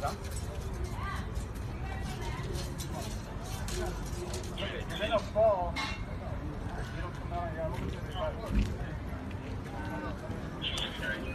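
Men talk tensely nearby outdoors.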